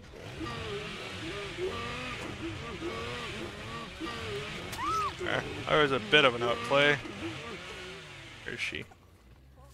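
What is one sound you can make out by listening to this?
A chainsaw roars and revs up.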